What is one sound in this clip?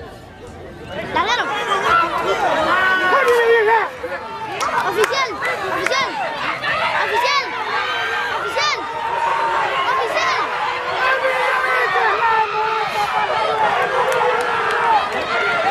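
A crowd shouts and cheers excitedly outdoors.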